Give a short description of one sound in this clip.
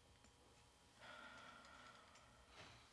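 A young woman speaks quietly and briefly.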